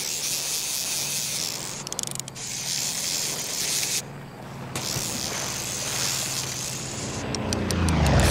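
Water splashes as a fish struggles on the line.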